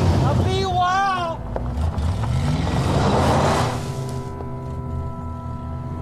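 A pickup truck pulls away on a dirt road.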